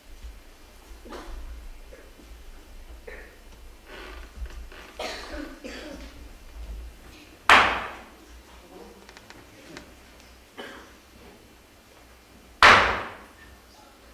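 A woman's voice rings out across a large echoing hall.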